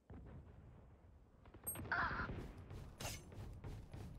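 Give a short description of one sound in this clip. A knife is drawn with a short metallic swish.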